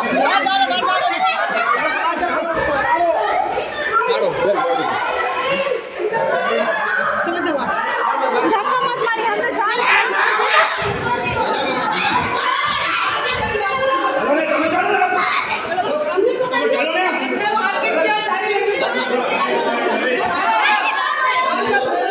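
A crowd of men and women shout and argue loudly close by.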